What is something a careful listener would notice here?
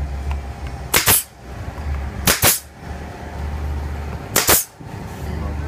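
A nail gun fires sharp bangs into wood.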